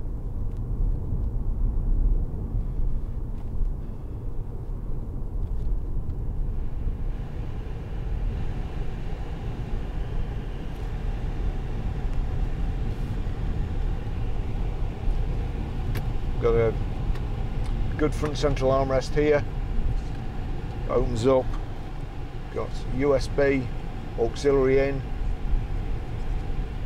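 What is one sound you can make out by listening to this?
A car engine hums steadily with road rumble from inside the cabin.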